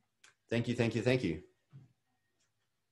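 A man speaks briefly into a microphone over an online call.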